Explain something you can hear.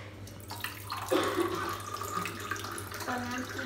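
Water pours from a bottle into a cup.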